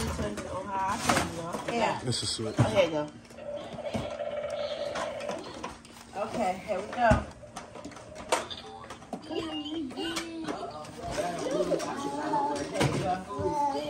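A cardboard toy box rustles and knocks in a woman's hands.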